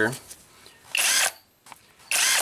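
A cordless power tool whirs in short bursts.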